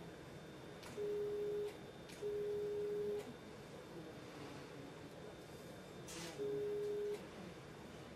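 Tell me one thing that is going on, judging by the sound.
A surgical cutting device gives out a steady electronic beep in short bursts.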